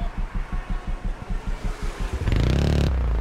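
Motorcycle engines idle with a pulsing rumble.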